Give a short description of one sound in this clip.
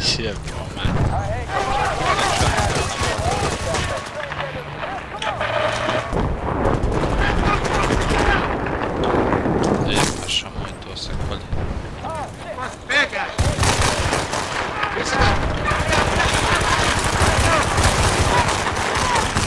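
Gunfire crackles in short bursts.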